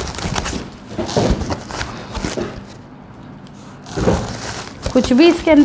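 Paper and cardboard rustle and crinkle as a box is unpacked.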